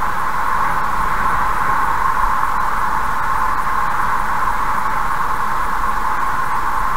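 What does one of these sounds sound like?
A car drives steadily along a highway, its tyres humming on the road.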